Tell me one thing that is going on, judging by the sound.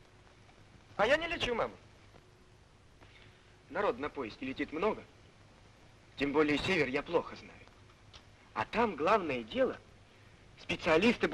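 A man speaks earnestly, close by.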